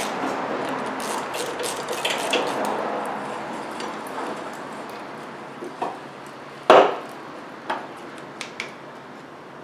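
A ratchet wrench clicks in short bursts.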